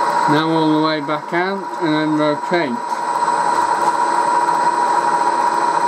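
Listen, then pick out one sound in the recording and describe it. A milling cutter grinds into metal.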